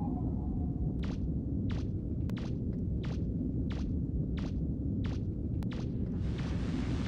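Metal footsteps clank at an even pace.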